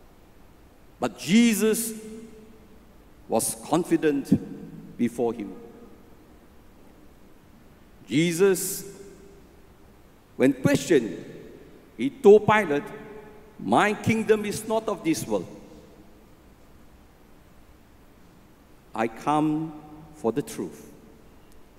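An elderly man speaks through a microphone with animation, in short phrases separated by pauses, in a reverberant hall.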